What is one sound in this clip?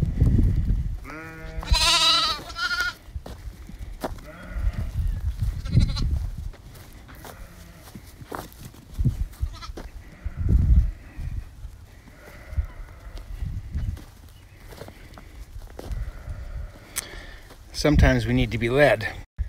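A lamb bleats loudly.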